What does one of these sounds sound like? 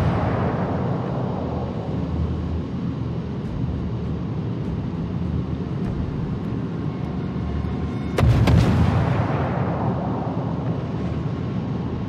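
A large ship's engine rumbles low and steady.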